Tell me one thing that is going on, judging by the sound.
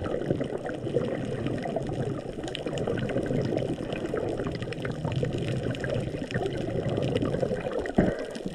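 Water rumbles and murmurs in a low, muffled wash, heard from underwater.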